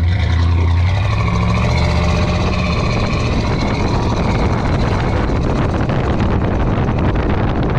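A car engine revs up as the car speeds up on the road.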